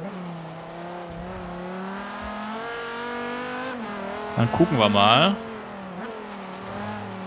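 A car engine roars steadily at high revs, shifting pitch as the car speeds up.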